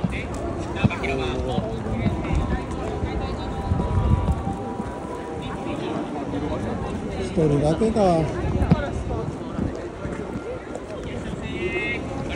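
A busy crowd murmurs outdoors.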